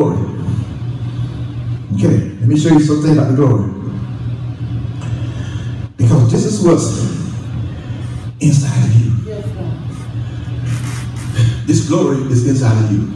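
A man preaches with passion into a microphone, heard through loudspeakers.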